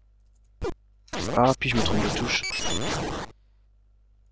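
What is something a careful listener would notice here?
A video game's sword swooshes in quick swipes.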